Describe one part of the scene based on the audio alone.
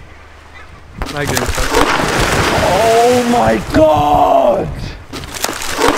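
A heavy rock splashes loudly into water.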